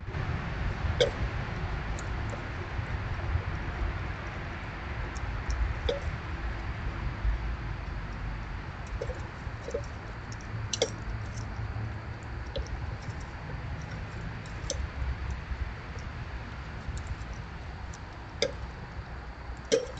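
A metal bird feeder clinks and rattles now and then.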